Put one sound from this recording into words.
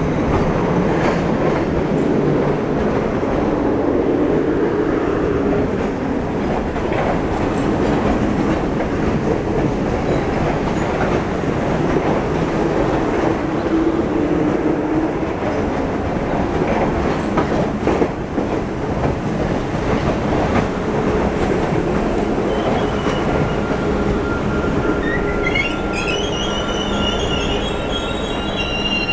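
A train rumbles and clatters past on the tracks close by.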